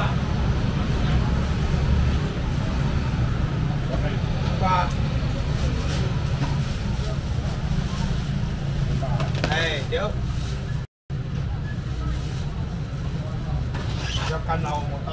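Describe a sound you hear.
A busy crowd murmurs and chatters nearby.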